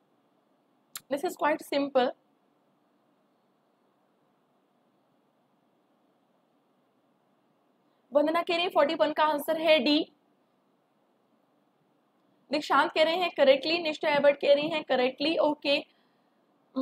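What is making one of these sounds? A young woman speaks calmly and clearly into a close microphone, with pauses between phrases.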